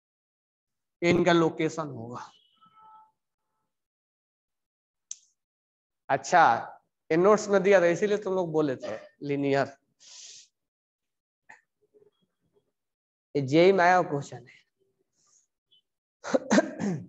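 A man lectures in short bursts, close by.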